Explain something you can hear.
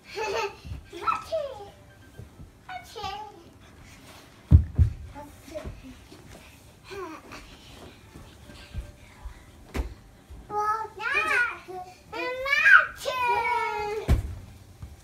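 Young children chatter and squeal playfully nearby.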